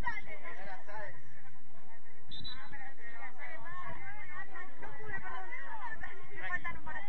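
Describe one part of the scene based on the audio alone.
Young women talk and chatter together outdoors, a little way off.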